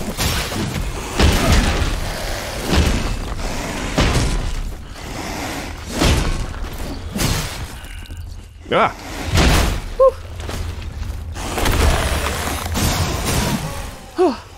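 Heavy blows thud and crash.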